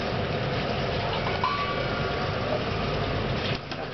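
A spoon clinks against a metal pot.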